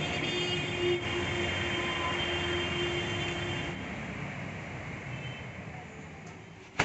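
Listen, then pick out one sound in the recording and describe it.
Street traffic hums outdoors.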